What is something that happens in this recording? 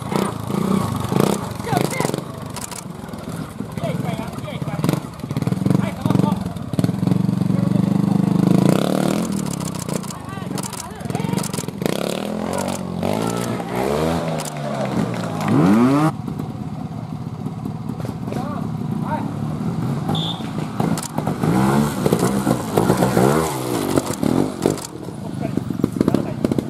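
A motorbike engine revs hard and roars in bursts.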